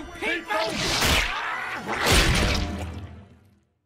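Thick liquid splashes down with a loud burst.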